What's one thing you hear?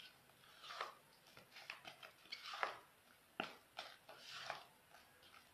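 A spatula scrapes frosting against a plastic bowl.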